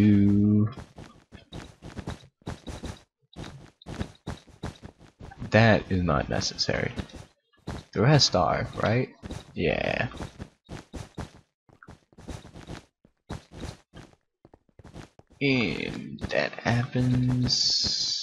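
Blocks are placed with quick soft clicks, one after another.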